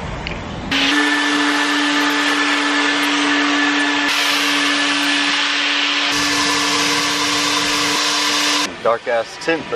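A vacuum cleaner hums steadily.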